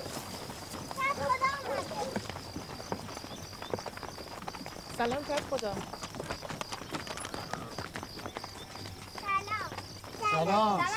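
Young children call out outdoors.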